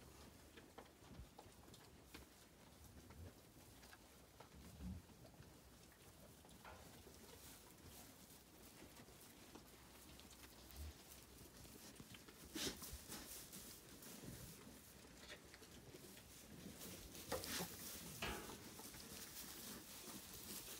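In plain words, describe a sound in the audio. Straw rustles as animals move about.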